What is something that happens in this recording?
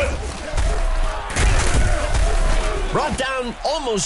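Football players thud together in a tackle.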